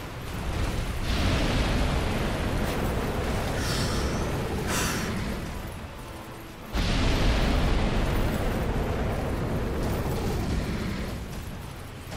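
A dragon's fiery breath roars loudly.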